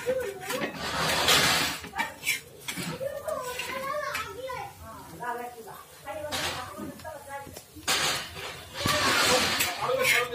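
A metal spatula scrapes and taps against a griddle.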